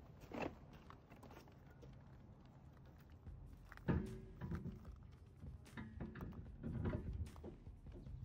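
A wheel knocks against a car's hub.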